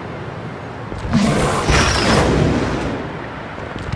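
A game character's fall ends in a loud rushing whoosh.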